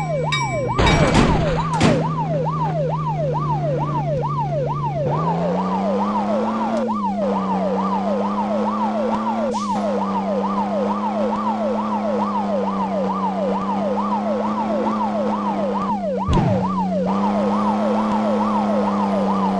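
A siren wails in a fast, rising and falling cycle throughout.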